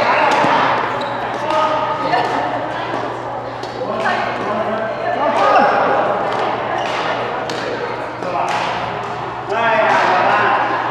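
Shuttlecocks are struck with sharp racket pops.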